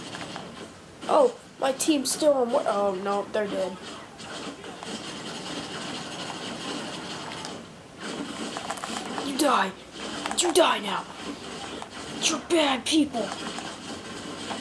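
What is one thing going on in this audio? Rapid gunfire cracks from a video game.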